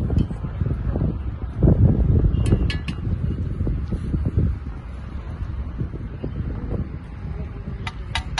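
Outdoors, wind rumbles steadily past.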